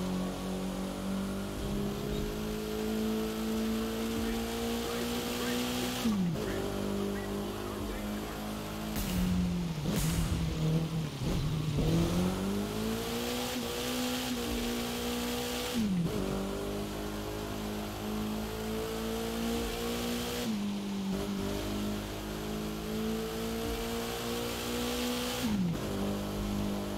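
A car engine roars at high revs, rising in pitch and dropping sharply with each gear change.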